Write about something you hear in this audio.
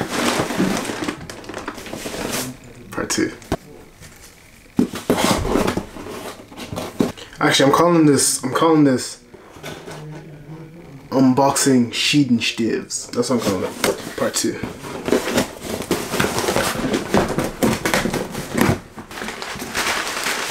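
Cardboard packaging rustles and crinkles.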